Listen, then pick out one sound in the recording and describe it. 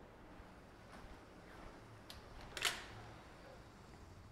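A heavy door swings open.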